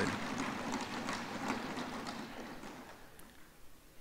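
Applause in a large hall dies away.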